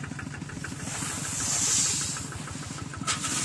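Grain pours from a bucket into a sack with a hiss.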